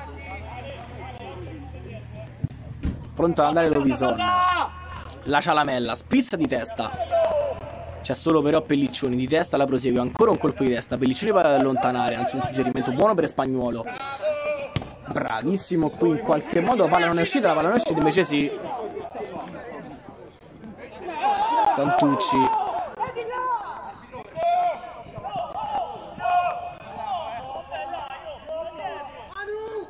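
Men shout to each other across an outdoor football pitch.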